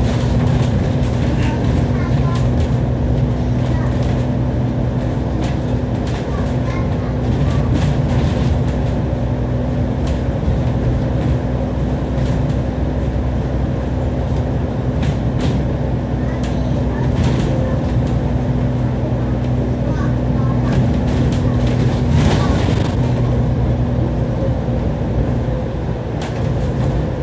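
The diesel engine of a double-decker bus drones as it drives along, heard from inside.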